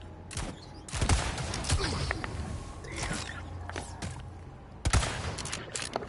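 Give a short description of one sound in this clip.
A rifle fires with a loud crack.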